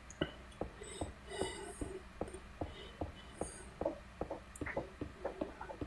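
Stone blocks are placed with quick, regular knocking thuds.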